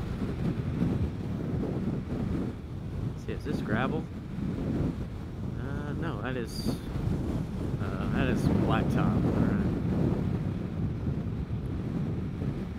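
Wind rumbles and buffets loudly outdoors.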